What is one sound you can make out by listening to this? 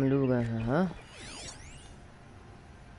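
A shimmering magical tone sweeps up and down.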